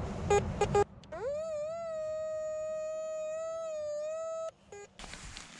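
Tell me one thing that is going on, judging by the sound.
A metal detector gives a long, steady beep.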